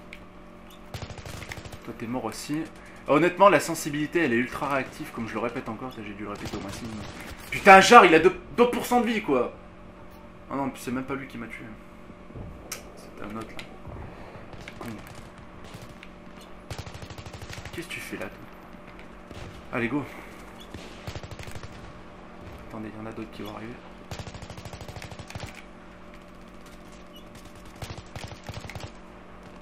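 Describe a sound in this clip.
Automatic rifle fire rattles in short rapid bursts.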